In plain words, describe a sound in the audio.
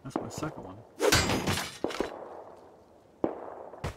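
A blade strikes a metal barrel with a loud clang.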